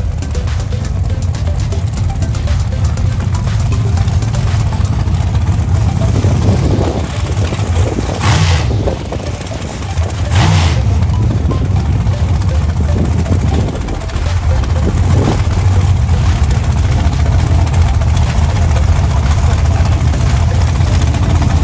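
A dragster engine idles with a loud, deep rumble nearby.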